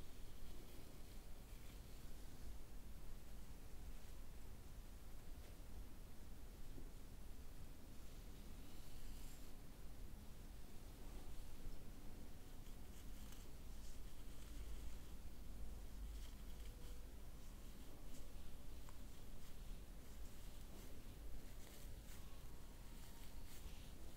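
Dry flower stems rustle softly against a woman's face and hair.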